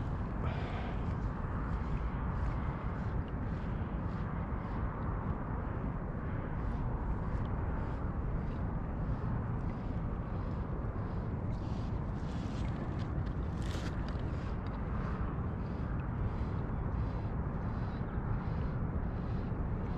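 Wind blusters steadily across a microphone outdoors.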